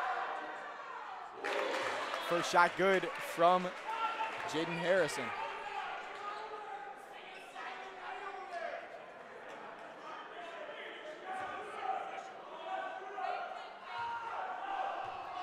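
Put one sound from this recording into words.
A crowd murmurs and chatters in an echoing gym.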